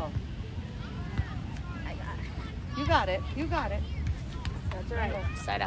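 Young girls call out and cheer nearby outdoors.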